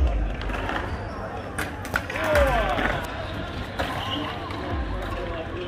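Bike tyres roll and grind over concrete.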